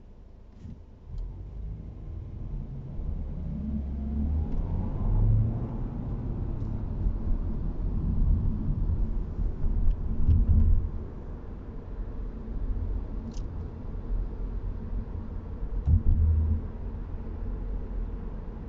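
Tyres rumble loudly on the road.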